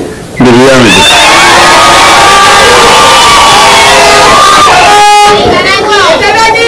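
A crowd cheers and sings.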